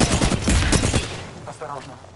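Gunfire rattles in a rapid, loud burst.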